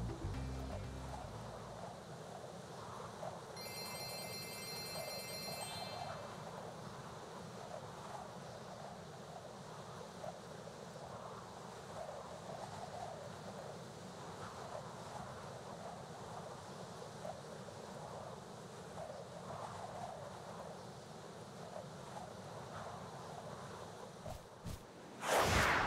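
A man talks casually into a microphone.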